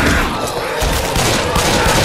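A fiery blast bursts nearby.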